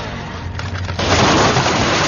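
A motorcycle crashes and scrapes along the ground.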